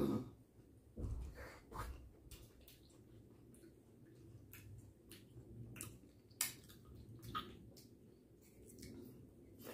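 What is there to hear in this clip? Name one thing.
A middle-aged man chews food noisily.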